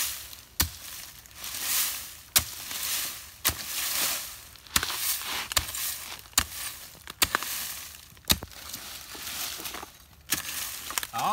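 A digging tool strikes and scrapes dry earth in quick blows.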